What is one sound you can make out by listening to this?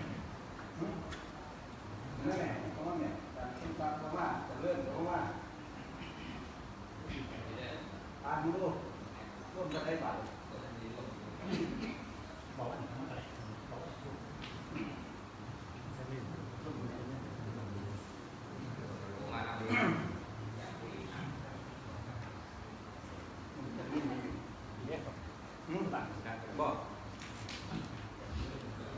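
A man speaks calmly through a loudspeaker in a large room.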